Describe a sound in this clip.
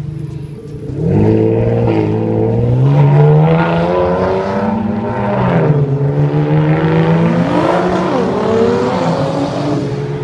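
A sports car engine revs loudly and roars as the car accelerates away.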